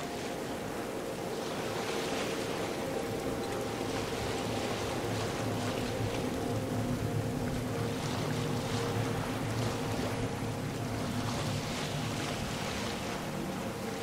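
Waves splash against a sailing boat's hull.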